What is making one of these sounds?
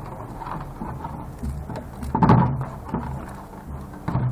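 Wires rustle and scrape.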